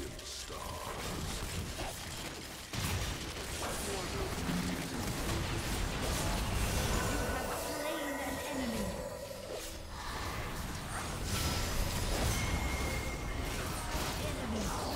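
Game spell effects whoosh and crackle in rapid bursts.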